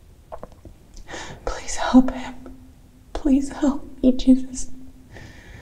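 A young woman sobs quietly.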